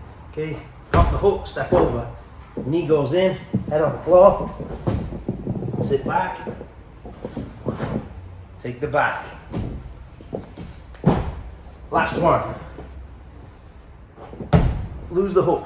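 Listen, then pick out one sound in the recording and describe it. A metal chair bumps and knocks against a padded mat.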